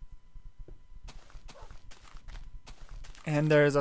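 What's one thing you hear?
Footsteps patter softly on grass and stone.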